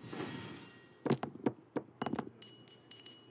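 Dice clatter and tumble on a table.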